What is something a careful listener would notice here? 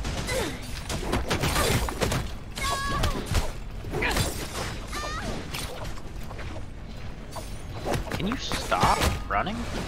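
Swords clash and strike in quick, sharp hits.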